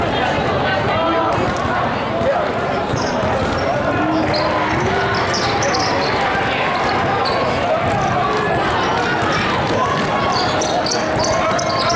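A crowd of spectators chatters throughout a large echoing hall.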